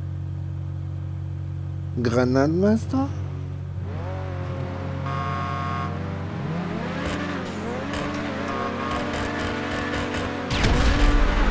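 Race car engines idle and rev loudly.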